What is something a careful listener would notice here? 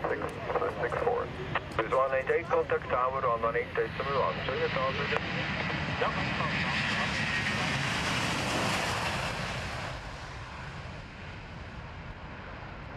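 A jet airliner's engines roar loudly as it takes off, then fade.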